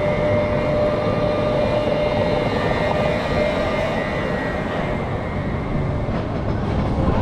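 Roller coaster wheels rumble and whine loudly along a steel track.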